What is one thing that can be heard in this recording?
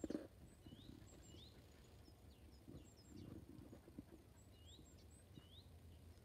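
A dog rustles through dry grass.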